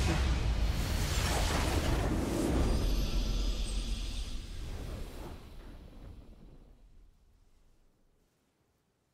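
A triumphant victory fanfare plays and fades out.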